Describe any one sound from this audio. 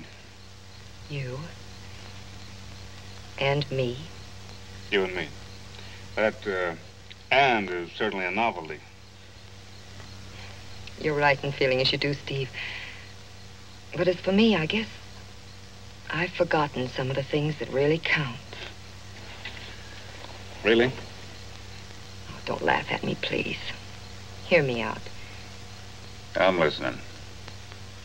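A young woman speaks softly and playfully nearby.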